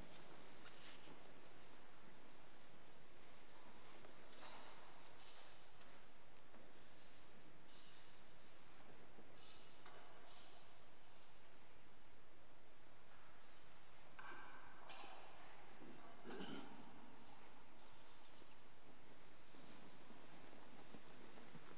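Soft footsteps and rustling echo through a large, reverberant hall.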